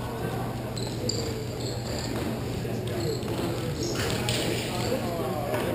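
Hockey sticks clack against a ball on a hard floor.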